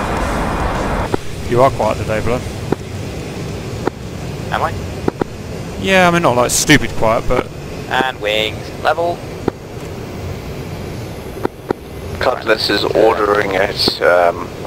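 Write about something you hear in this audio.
A jet engine hums steadily, heard from inside a cockpit.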